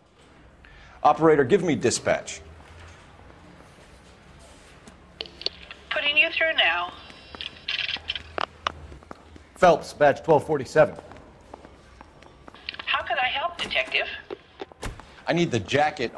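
A man speaks calmly into a telephone.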